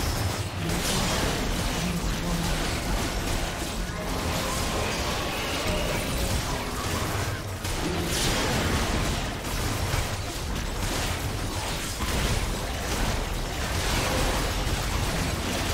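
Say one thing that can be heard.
Magic blasts crackle and boom in a fast, busy video game battle.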